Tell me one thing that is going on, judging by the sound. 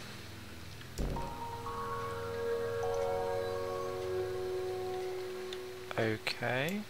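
Bright electronic tones chime and hum as a glowing energy ring switches on.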